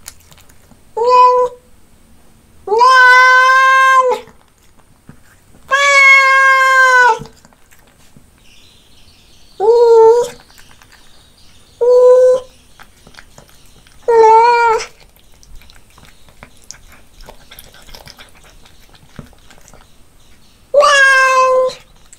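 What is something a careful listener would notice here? A cat meows loudly, again and again.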